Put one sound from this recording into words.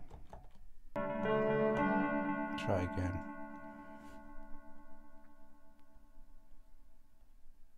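A synthesizer plays a bright chord that slowly fades away.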